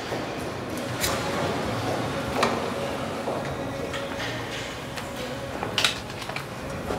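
Knives scrape and chop on a cutting board.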